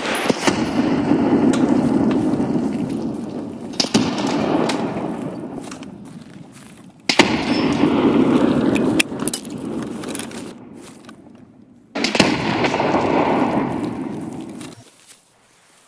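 A rifle fires loud shots that echo and roll away outdoors.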